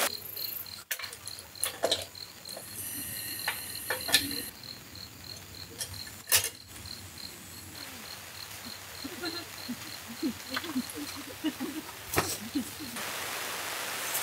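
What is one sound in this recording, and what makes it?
Metal tent poles knock and click as they are handled.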